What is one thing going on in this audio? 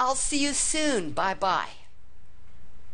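An older man speaks with animation through a headset microphone.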